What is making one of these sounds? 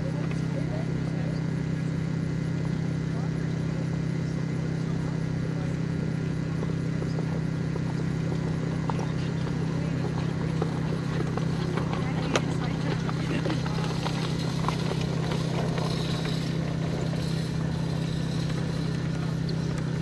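Horses' hooves thud softly on grass.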